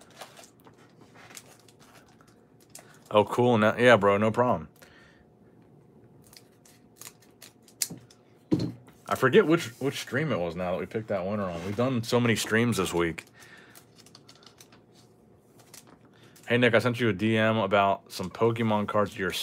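Foil card packs crinkle and rustle as they are handled.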